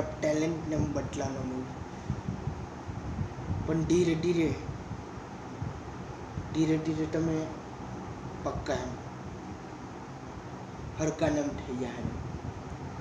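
A young man speaks in short bursts close by, with pauses between.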